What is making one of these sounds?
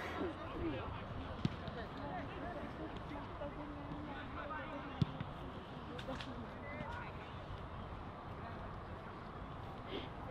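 Young men shout and call to each other far off across an open field.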